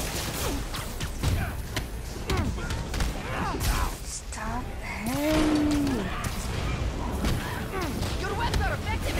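Punches and kicks land with heavy thuds and smacks in a fast fight.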